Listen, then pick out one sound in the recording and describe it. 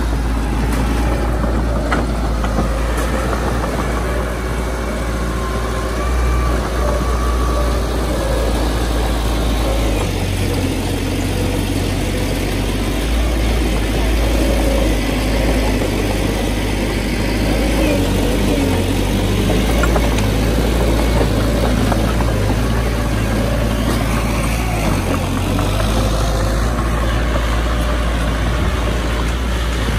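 A bulldozer engine rumbles steadily close by.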